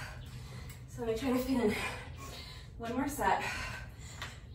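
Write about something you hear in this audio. A young woman talks nearby with animation.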